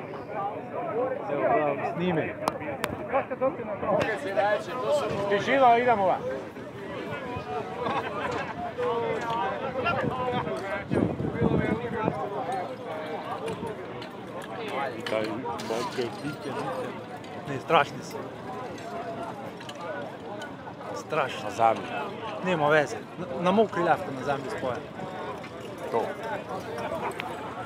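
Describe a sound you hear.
Men and women talk nearby outdoors, with voices overlapping.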